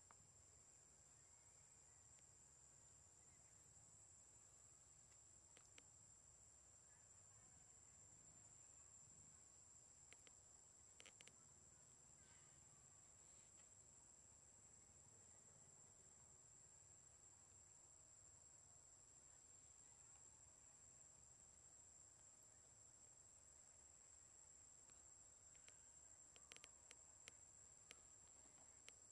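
A monkey quietly picks and scratches at its fur.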